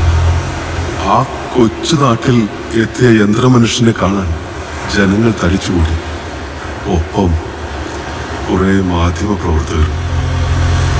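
A man talks loudly over a loudspeaker.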